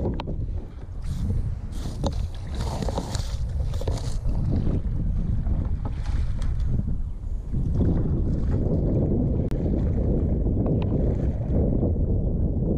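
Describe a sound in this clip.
A paddle splashes and dips into the water in a steady rhythm.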